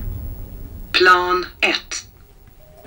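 An elevator chime rings out.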